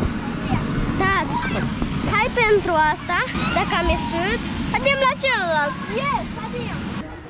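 A young girl talks close by in a high, lively voice.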